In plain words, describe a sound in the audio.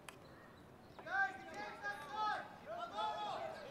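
A young man shouts loudly from across an open field.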